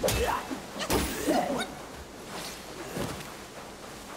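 A staff swishes through the air and strikes with sharp hits.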